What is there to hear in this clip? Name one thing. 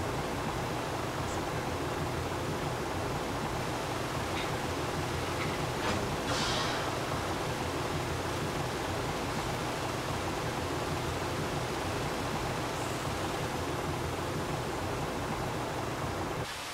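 Water hisses from fire hoses.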